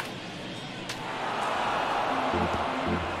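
A crowd cheers louder.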